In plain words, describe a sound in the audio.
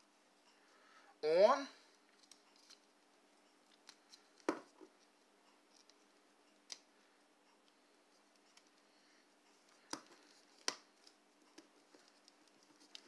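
Fingers press and knead soft clay, with faint squishing and light taps.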